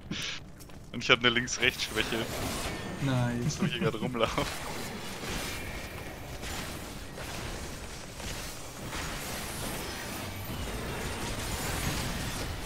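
Magic blasts whoosh and crackle in a battle.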